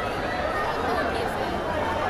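A woman talks close by.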